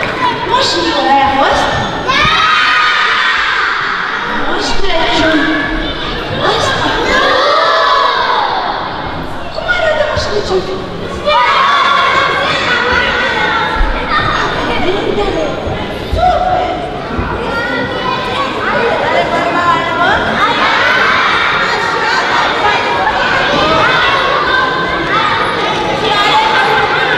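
A crowd of children shouts and cheers.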